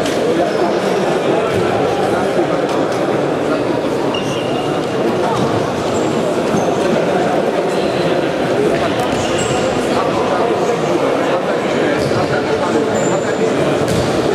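Sneakers squeak on a hard floor in an echoing hall.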